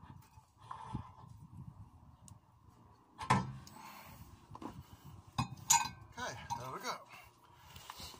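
A metal brake disc clanks as it is pulled off a wheel hub.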